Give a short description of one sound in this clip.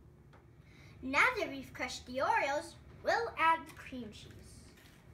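A young boy speaks calmly close by.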